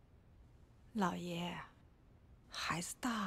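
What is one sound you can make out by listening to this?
A middle-aged woman speaks softly.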